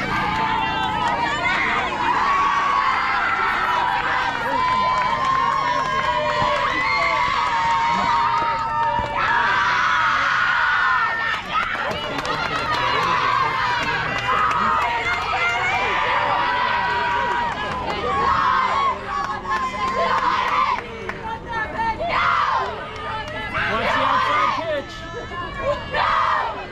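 A crowd of young women cheers and chants loudly outdoors.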